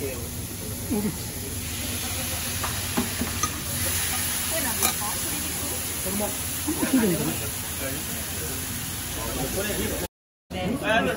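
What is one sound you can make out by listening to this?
Meat sizzles on a hot griddle.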